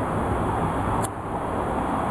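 A lighter clicks once.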